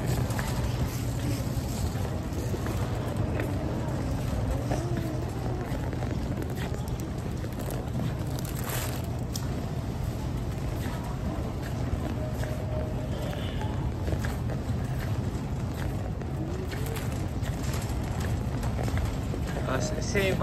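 A shopping cart rolls and rattles steadily over a smooth floor.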